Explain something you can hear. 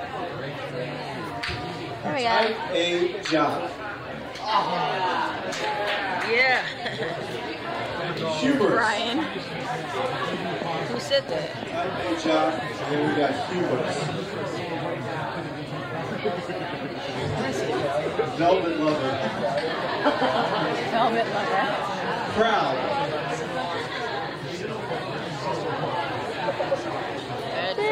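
Young people chatter and laugh close by in a crowded room.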